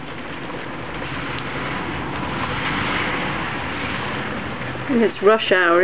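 A car swishes past on a wet road.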